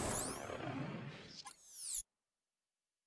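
A burst of loot items clatters and chimes with bright ringing tones.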